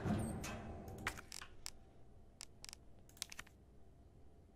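Short electronic clicks sound in quick succession.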